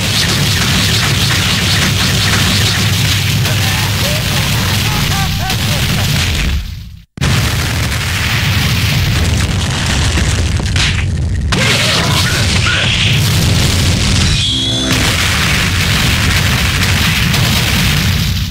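Rapid punches and blows land in quick succession.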